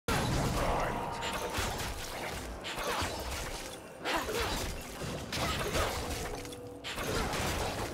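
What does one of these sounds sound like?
Game combat effects clash and whoosh in quick bursts.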